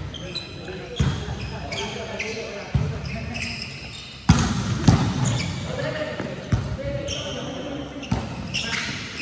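A volleyball is struck by hand, the smack echoing in a large hall.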